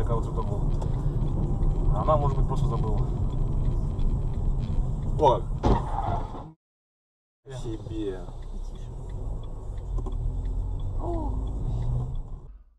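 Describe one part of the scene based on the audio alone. A car engine hums low and steady from inside a moving car.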